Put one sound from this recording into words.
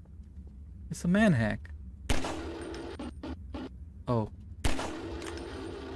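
A pistol fires a few shots.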